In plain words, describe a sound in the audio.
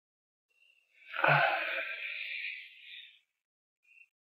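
A young man speaks softly nearby.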